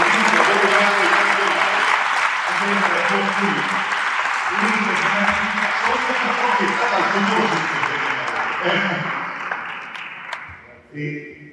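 A crowd applauds loudly in a large room.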